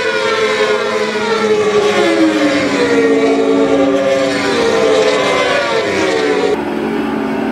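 Racing motorcycle engines roar and whine past, rising and falling in pitch as the bikes change gear.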